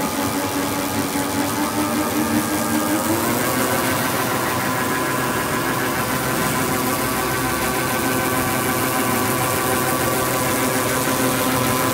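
A machine hums and whirs steadily as rollers turn.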